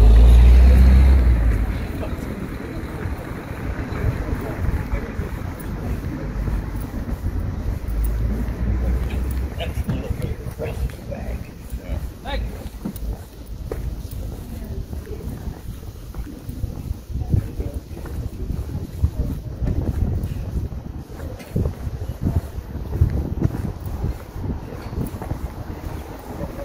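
Footsteps tap on paving stones close by.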